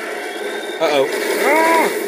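Rifle shots from a video game crack through a television speaker.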